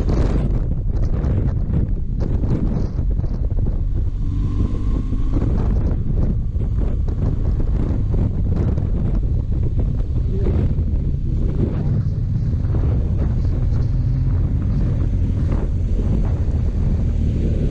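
A motorcycle engine hums steadily while riding along.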